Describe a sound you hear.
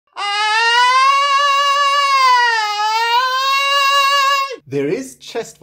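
A man sings a long, loud open vowel close to a microphone.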